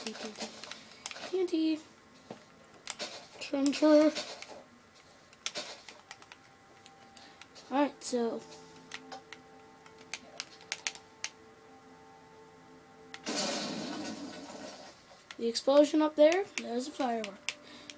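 Video game sound effects play from a television speaker, with short clicks and thuds.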